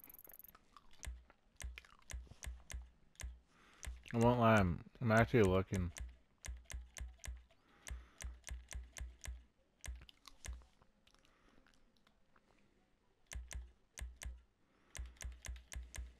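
Soft menu clicks tick in quick runs as selections change.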